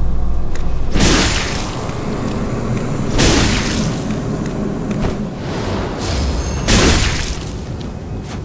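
Loud whooshing bursts ring out.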